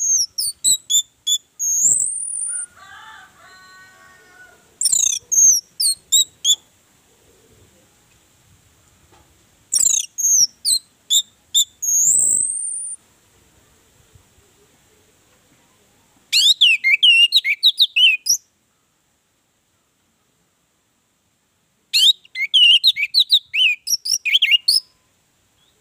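An orange-headed thrush sings in bursts of varied whistles and chattering notes.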